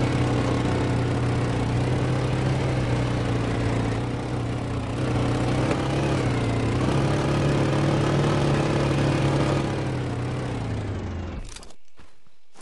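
A quad bike engine runs as the quad bike rides along.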